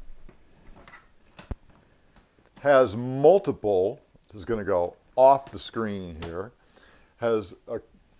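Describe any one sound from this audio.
A suitcase handle clicks and rattles as it is pulled up.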